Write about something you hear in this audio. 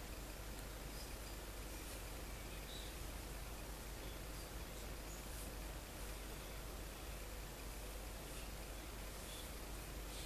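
A brush scratches lightly against a cardboard tube.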